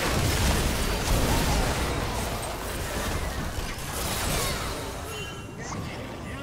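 Video game spell effects crackle, whoosh and boom in a fast fight.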